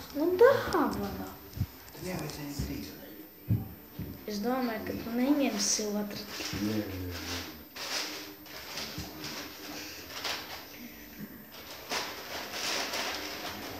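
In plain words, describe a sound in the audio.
A boy talks playfully close to the microphone.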